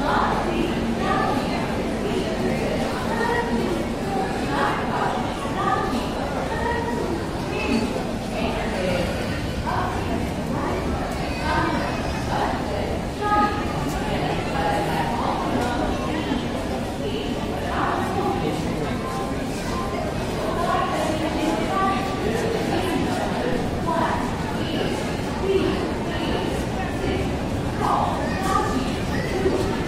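A crowd of people chatter nearby, with voices echoing under a roof.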